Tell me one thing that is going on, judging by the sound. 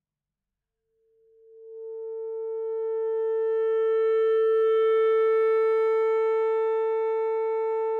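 A saxophone plays one long held note that swells and stays steady.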